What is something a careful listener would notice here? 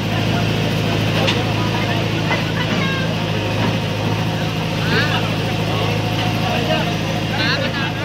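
A crowd of men talk and call out nearby.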